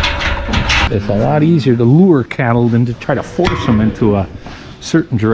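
Cows moo loudly close by.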